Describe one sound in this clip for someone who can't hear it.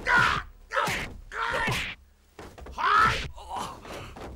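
Blows and whooshes of a fight thud sharply.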